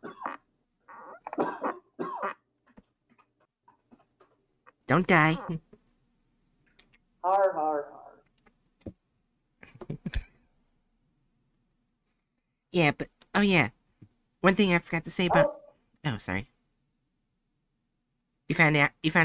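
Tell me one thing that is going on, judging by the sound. A young woman talks with animation into a microphone, in short bursts.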